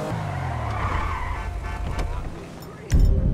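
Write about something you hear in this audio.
A car engine idles.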